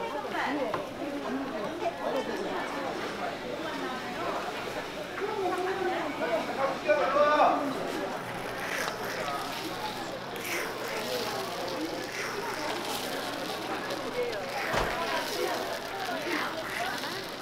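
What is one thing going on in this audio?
Batter sizzles softly on a hot griddle.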